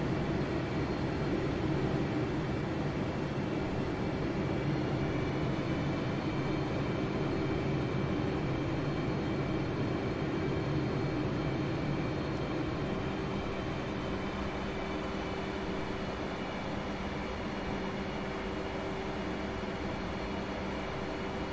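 A jet engine roars steadily with a low hum and a high whine.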